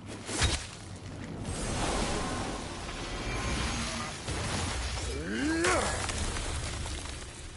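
An axe smashes through a crystal barrier with a loud crash.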